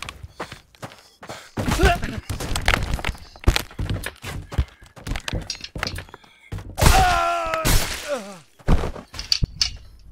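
Heavy blows thud and clatter as weapons strike.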